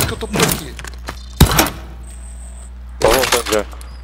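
A metal crate lid clanks open.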